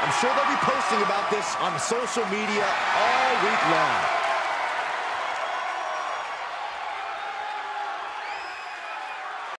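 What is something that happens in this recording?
A large crowd cheers loudly in a big arena and slowly fades.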